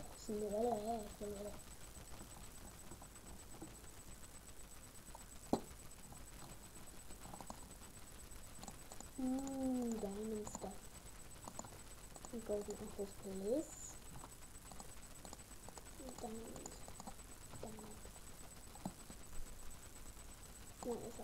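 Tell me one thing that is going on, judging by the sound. A young woman sings quietly in short phrases, close to a microphone.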